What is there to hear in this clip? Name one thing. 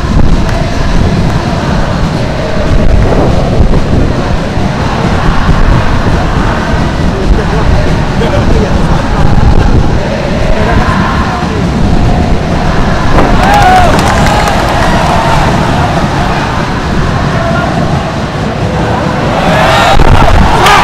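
A huge stadium crowd chants and sings in unison, echoing loudly through the open air.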